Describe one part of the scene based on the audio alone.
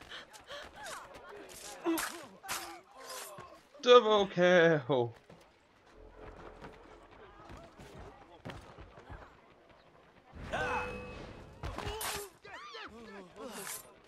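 Punches and blows land in a scuffle.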